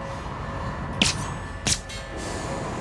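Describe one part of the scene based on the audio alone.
A pistol fires two sharp shots.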